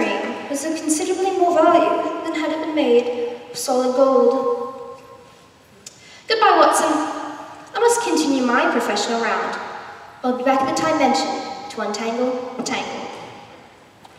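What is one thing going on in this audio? A young man speaks loudly and theatrically, heard from a distance in a large hall.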